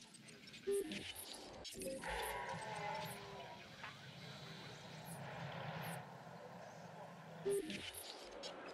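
A short electronic interface chime sounds twice.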